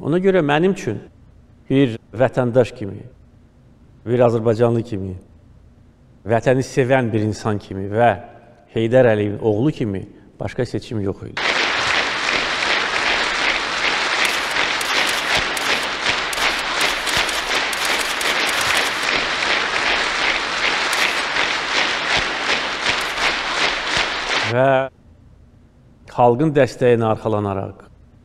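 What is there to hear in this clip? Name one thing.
A middle-aged man speaks calmly and firmly close to a microphone.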